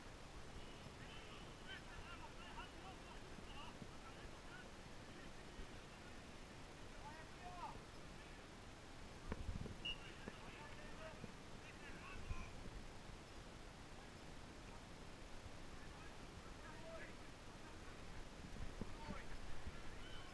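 Men shout to each other in the distance outdoors.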